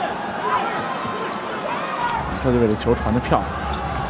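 A basketball thuds as it bounces on the court.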